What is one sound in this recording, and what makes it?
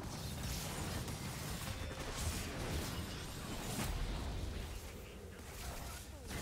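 Spell effects crackle and whoosh in a fast video game fight.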